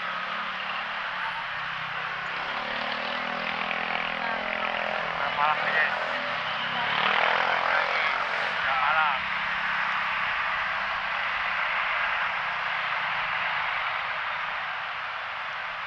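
Heavy traffic rumbles and hisses steadily along a busy street outdoors.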